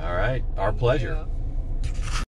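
A man speaks up close.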